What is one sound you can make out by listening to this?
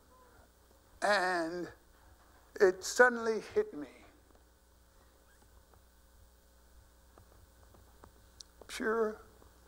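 An elderly man speaks expressively into a microphone, in bursts with pauses.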